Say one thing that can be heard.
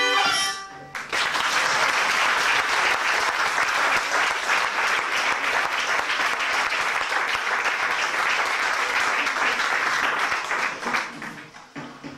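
An audience claps loudly in a hall.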